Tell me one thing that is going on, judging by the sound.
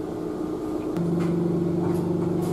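A train's motor hums at a steady pitch.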